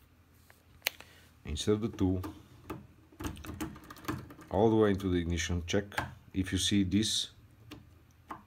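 A metal tool clicks faintly against a lock.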